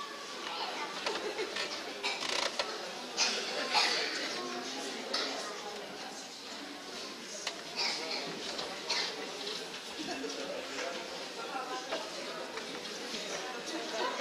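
A woman talks to the children nearby.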